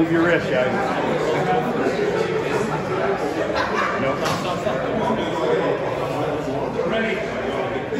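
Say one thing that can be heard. Several men talk and shout excitedly nearby.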